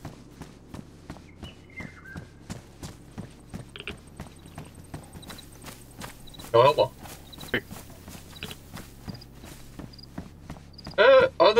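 Footsteps tread steadily on a hard pavement.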